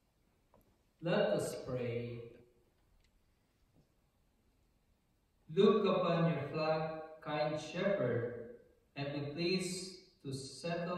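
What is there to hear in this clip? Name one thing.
A man speaks calmly and clearly into a microphone, in a room with a slight echo.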